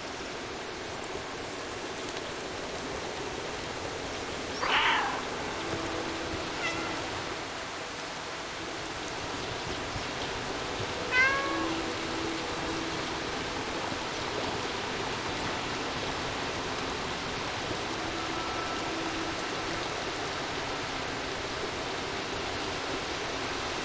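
Water rushes steadily from a waterfall in the background.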